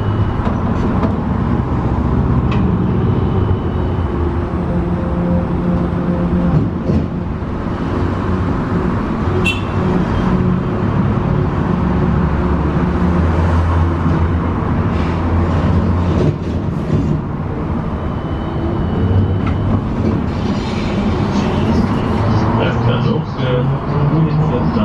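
The bus body rattles and clatters softly.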